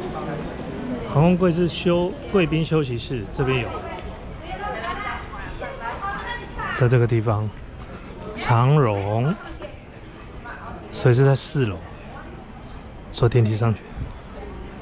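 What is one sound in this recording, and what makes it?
A man talks close up, calmly, as if into a microphone.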